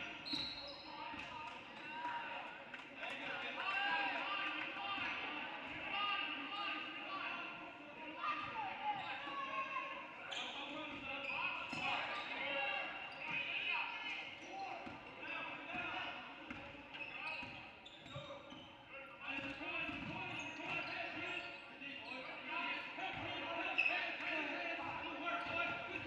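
Players and spectators call out and chatter.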